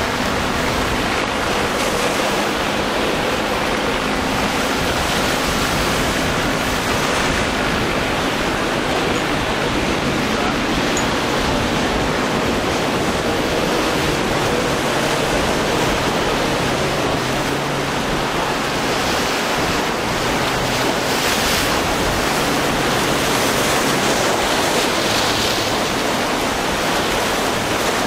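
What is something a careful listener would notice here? Waves crash and churn steadily.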